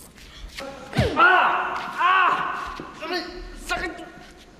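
A young man shouts angrily.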